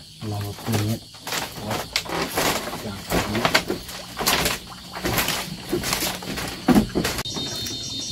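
Bare feet thump on a bamboo floor.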